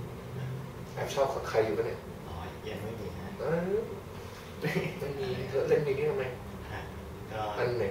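Another young man talks cheerfully close by.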